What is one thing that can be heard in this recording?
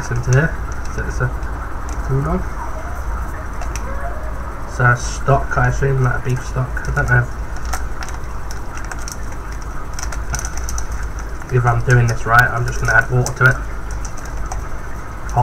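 Foil crinkles and tears as a lid is peeled from a cup.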